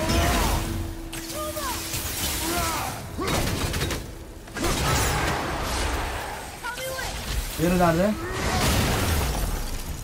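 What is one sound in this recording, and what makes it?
Blows land in a video game fight.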